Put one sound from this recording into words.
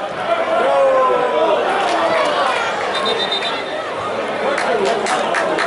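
Football players shout to each other outdoors across an open pitch.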